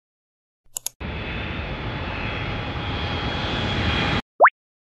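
A jet engine roars steadily, growing slightly louder.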